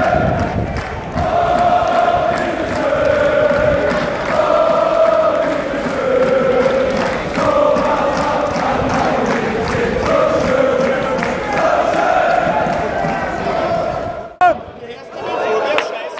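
A crowd claps along in a steady rhythm.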